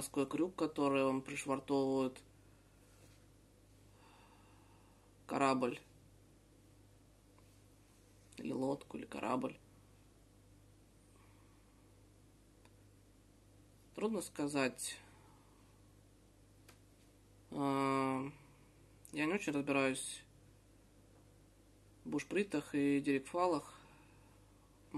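A man talks close by in short bursts with pauses, calmly explaining.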